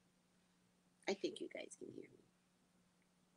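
A woman speaks briefly and calmly into a microphone, heard close up.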